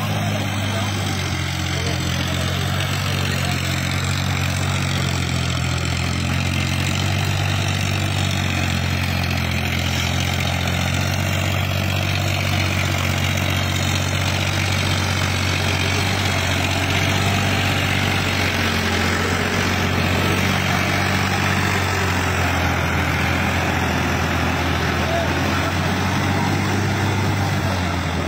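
A rotary tiller churns through wet mud.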